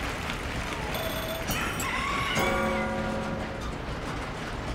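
Bright game chimes jingle as rewards are tallied.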